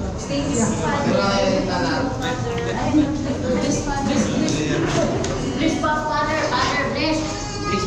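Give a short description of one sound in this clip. Several men and women talk and chatter close by.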